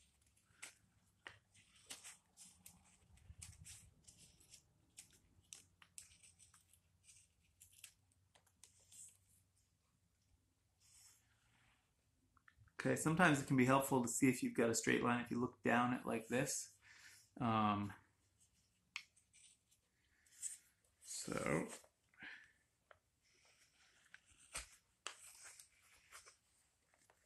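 A knife shaves thin curls from wood with soft scraping strokes.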